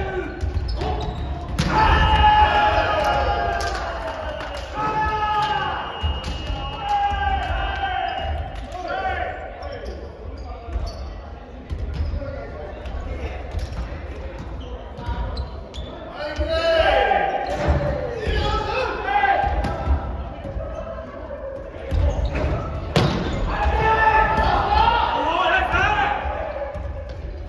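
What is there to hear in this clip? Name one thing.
Young men and women call out and shout during a volleyball game in a large echoing gym.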